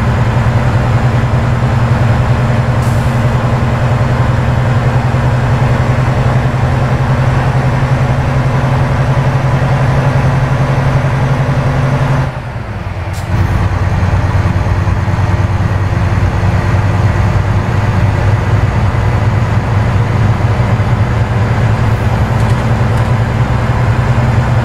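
Tyres roll on a highway with a steady rushing sound.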